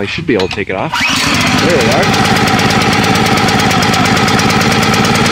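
A small petrol engine starts and runs with a steady loud chugging.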